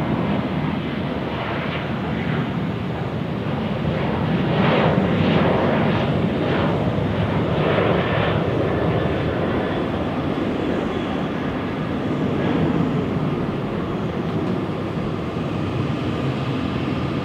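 A jet airliner's engines roar loudly as it speeds down a runway and climbs away.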